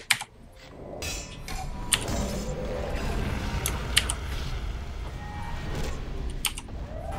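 Magic spells burst and whoosh.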